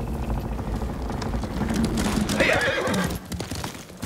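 A horse's hooves clop on a dirt path.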